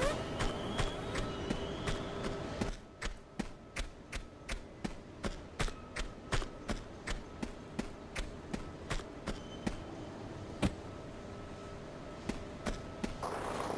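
Quick footsteps run and tap on a hard floor.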